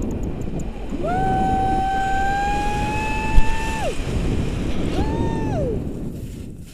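A woman shrieks with delight in long, high cries.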